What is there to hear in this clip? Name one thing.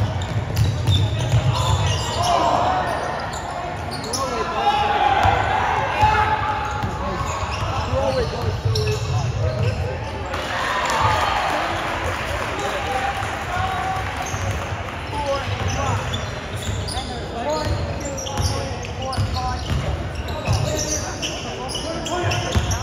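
A crowd of spectators cheers and chatters in an echoing gym.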